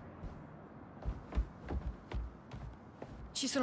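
Footsteps thud softly.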